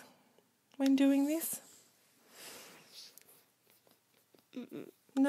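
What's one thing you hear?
Paper rustles softly as a hand rubs and presses it flat.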